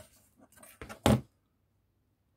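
A metal ruler clacks down onto cardboard.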